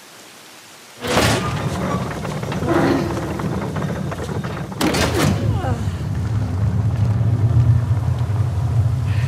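A heavy stone block grinds and rumbles as it turns.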